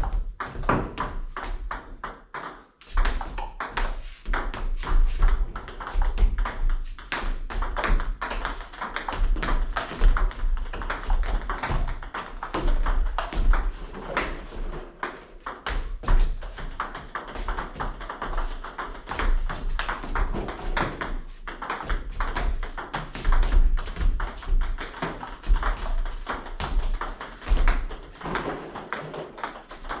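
Table tennis balls click off paddles and the table in a fast rally.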